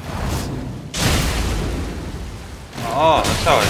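A powerful magical blast bursts with a loud roar.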